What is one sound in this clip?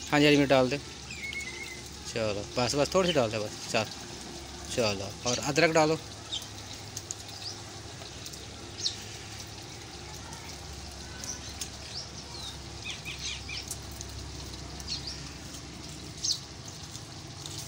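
Chopped vegetables drop into a metal pot.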